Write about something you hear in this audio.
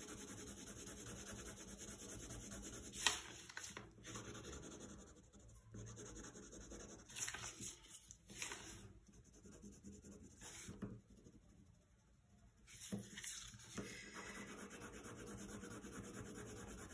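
A coloured pencil scratches softly across paper.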